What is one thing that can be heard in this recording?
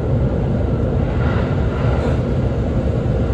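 A level crossing bell rings briefly as the train passes.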